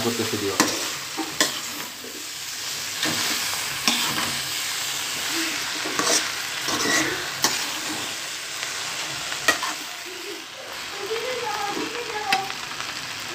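A metal spatula scrapes and clanks against a pan.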